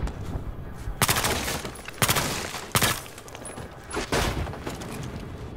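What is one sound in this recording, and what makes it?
A rifle fires loud, quick bursts of shots nearby.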